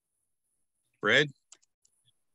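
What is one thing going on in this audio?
A man says a brief word over an online call.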